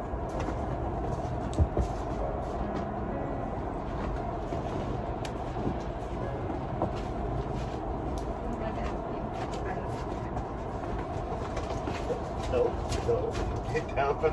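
Footsteps crunch through snow.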